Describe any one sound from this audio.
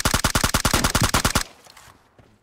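An assault rifle fires in rapid automatic bursts.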